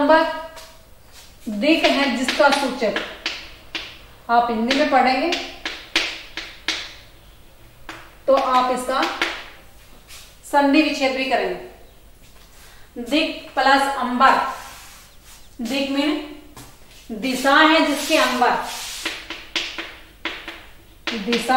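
A young woman speaks clearly and steadily, as if teaching.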